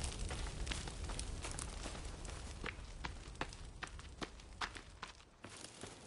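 Footsteps crunch through undergrowth at a steady walking pace.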